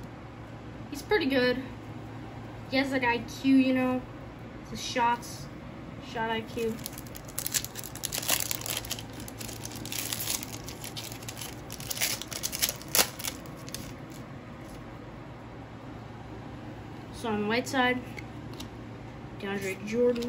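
Trading cards rustle and click as a hand shuffles through them.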